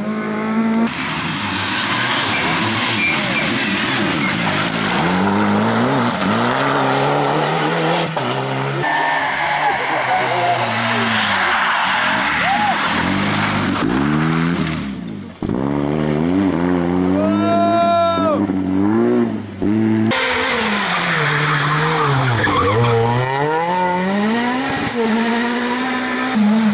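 Rally car engines roar and rev hard as the cars speed past one after another.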